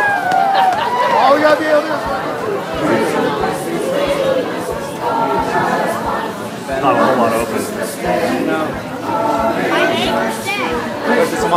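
A group of people sings carols together.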